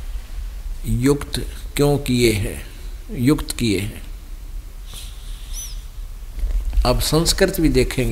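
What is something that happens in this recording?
Fingers brush and rub across a paper page.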